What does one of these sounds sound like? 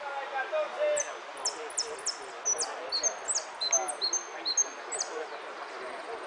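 A hooded siskin sings a fast, twittering song outdoors.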